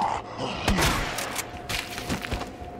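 A shotgun fires.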